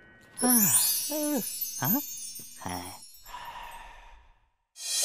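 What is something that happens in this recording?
A cartoon man speaks in a sly, playful voice.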